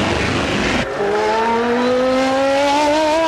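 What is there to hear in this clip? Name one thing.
A car engine revs up with a rising whine as it speeds away.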